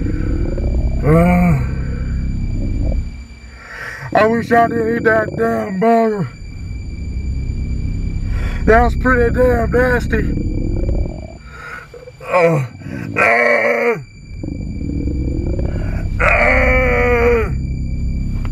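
A person speaks close by in a high, croaky voice.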